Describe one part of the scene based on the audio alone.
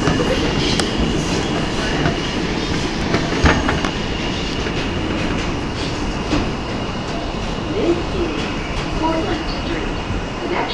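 A subway train rumbles and rattles loudly through a tunnel.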